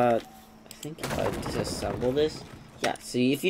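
Wooden planks clatter and knock together.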